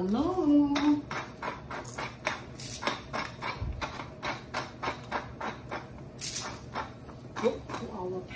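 A pepper mill grinds in quick, rasping clicks.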